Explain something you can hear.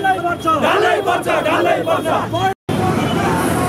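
A crowd of men chants and shouts slogans loudly outdoors.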